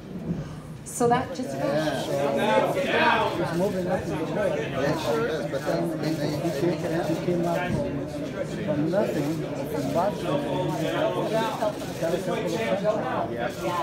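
A crowd of people chatter loudly in a large room.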